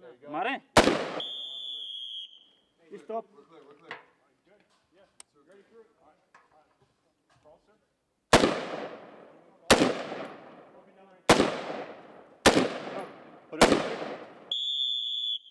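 A carbine fires single shots outdoors, each crack echoing away.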